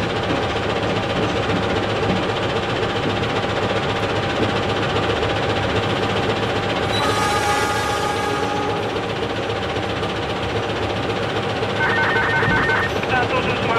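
A train engine rumbles steadily while the locomotive rolls along the track.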